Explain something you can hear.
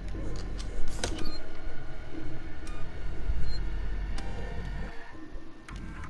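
Electronic tones chime from an emergency panel.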